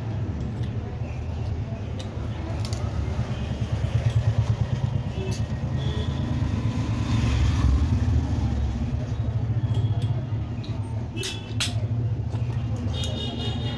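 A screwdriver turns screws in a metal tool casing.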